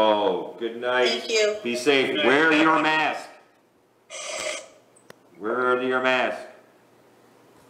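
A man speaks calmly into a microphone in a quiet, slightly echoing room.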